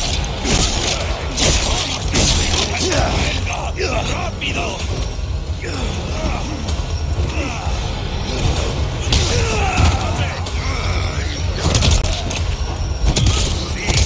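A young man speaks with animation into a headset microphone, close by.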